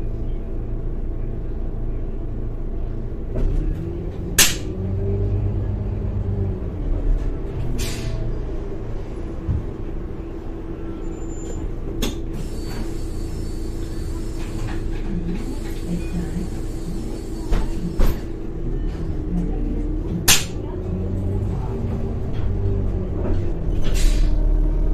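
A bus engine drones low and rises and falls in pitch as the bus drives.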